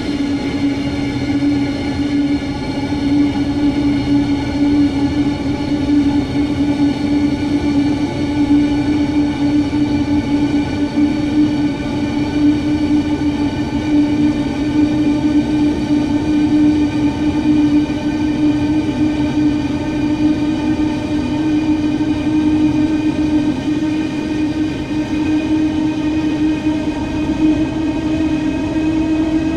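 A train's electric motor hums steadily and slowly rises in pitch as it speeds up.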